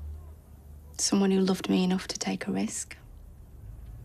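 A young woman speaks quietly and hesitantly close by.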